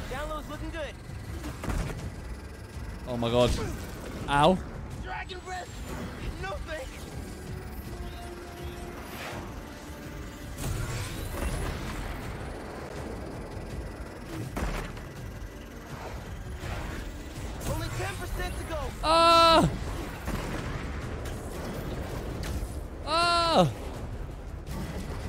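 Air rushes past as a game character swings through the air.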